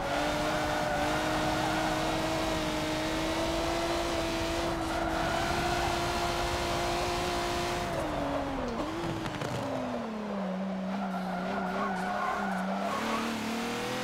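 A racing car engine roars at high revs, drops as the car slows, then climbs again.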